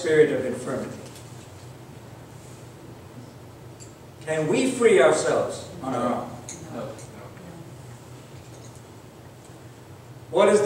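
A man speaks slowly and earnestly into a microphone in a hall with a slight echo.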